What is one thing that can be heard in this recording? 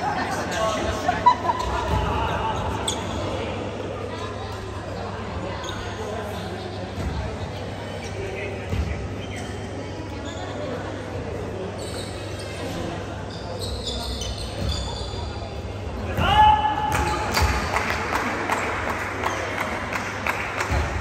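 Young players call out to each other in a large echoing gym.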